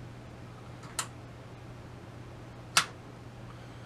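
Plugs snap sharply into sockets.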